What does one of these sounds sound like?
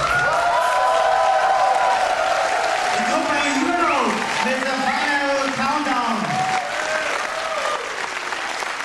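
A rock band plays loudly in a large hall and ends the song.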